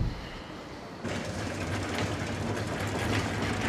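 A cart rolls along a hard floor.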